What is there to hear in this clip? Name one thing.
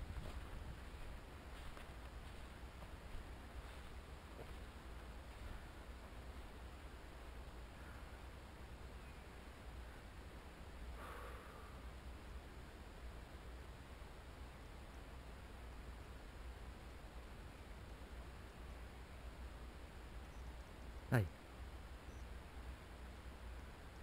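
Dry grass rustles and swishes.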